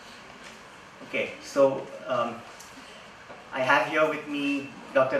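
A man speaks calmly through a microphone and loudspeakers in a large echoing hall.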